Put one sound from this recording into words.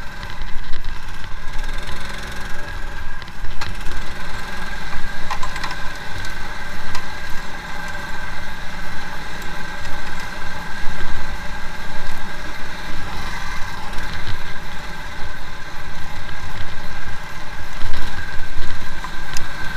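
Tyres rumble and bump over a muddy track.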